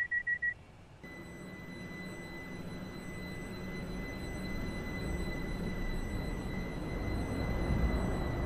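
A train rolls in with a rising electric whine and rumble.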